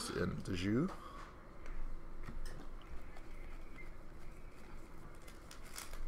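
Foil card wrappers crinkle and tear as hands rip them open.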